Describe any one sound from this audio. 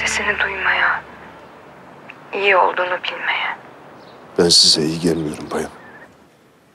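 A man speaks tensely on a phone, close by.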